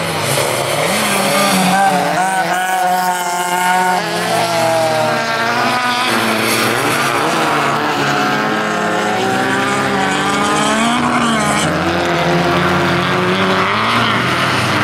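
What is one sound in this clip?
Race car engines roar and rev hard, rising and falling in pitch.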